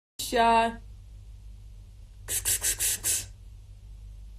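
A young woman speaks briefly and quietly, close to the microphone.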